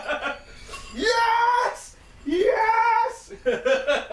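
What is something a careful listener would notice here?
A young man shouts with excitement.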